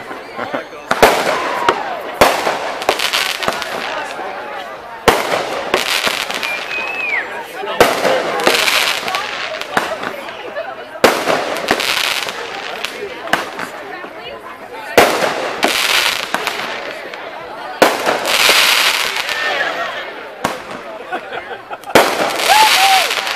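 Firework sparks crackle and fizz after each burst.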